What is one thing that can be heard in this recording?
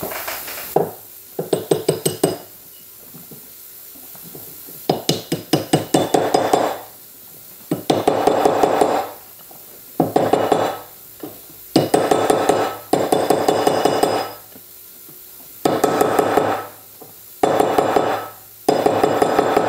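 A mallet taps on metal in quick bursts, ringing slightly.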